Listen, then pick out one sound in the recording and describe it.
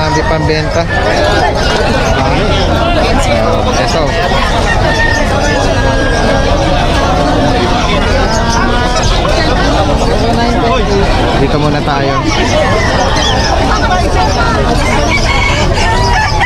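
A crowd of men talks and calls out all around, close by, outdoors.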